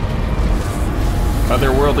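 A fiery blast roars and crackles.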